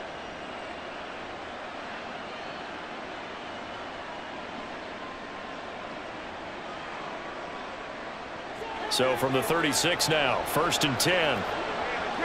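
A stadium crowd roars steadily all around.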